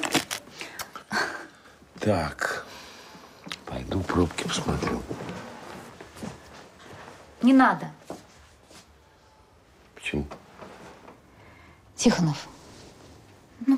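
An older man speaks in a low, tired voice close by.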